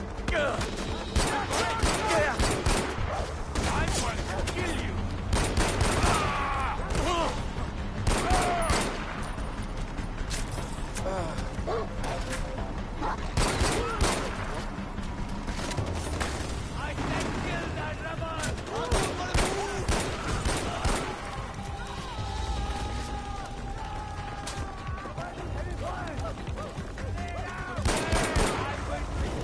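A pistol fires sharp shots in quick bursts.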